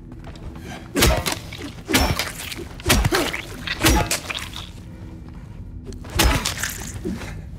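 A metal pipe strikes a body with heavy, repeated thuds.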